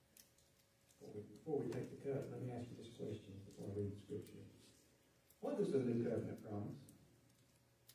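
A man speaks calmly from a lectern in a room with some echo.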